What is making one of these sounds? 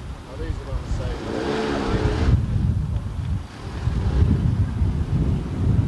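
A small car engine runs close by as the car drives slowly past.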